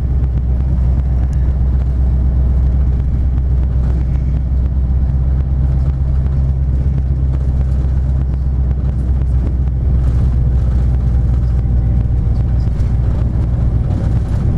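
A vehicle engine hums steadily from inside as it drives along a road.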